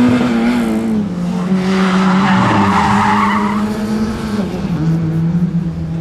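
A classic Mini's engine revs as the Mini races through a turn.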